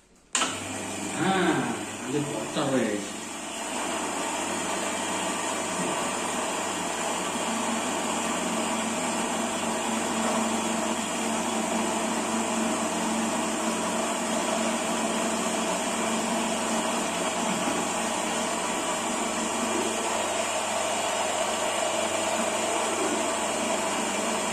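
A coffee grinder whirs steadily.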